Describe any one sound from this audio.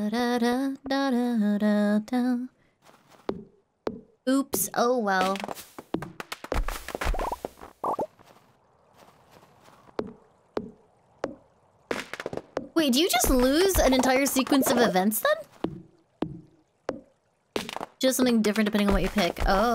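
A young woman talks animatedly into a microphone, close up.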